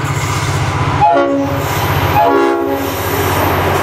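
A train horn blasts twice.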